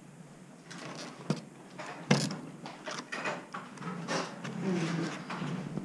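Small objects clatter and knock as hands rummage through them.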